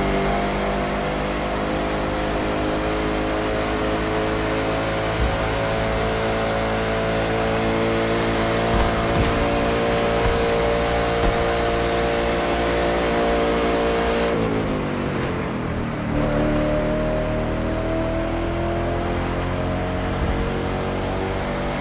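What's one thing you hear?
A sports car engine roars at high speed, dropping in pitch as it slows and then revving up again.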